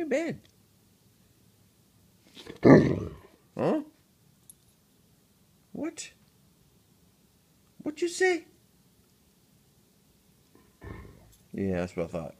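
A large dog whines and howls close by.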